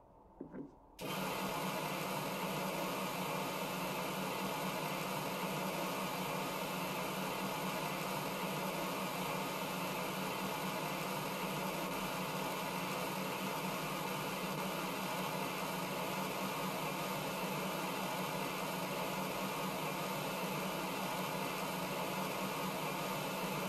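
A pressure washer sprays a steady, hissing jet of water.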